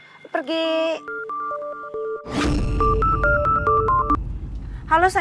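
A phone rings with a short melody.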